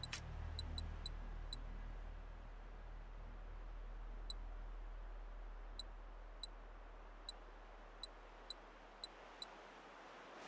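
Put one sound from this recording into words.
Short soft clicks tick now and then as menu items are selected.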